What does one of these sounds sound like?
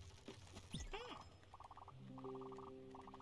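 Short electronic blips chirp rapidly in quick bursts.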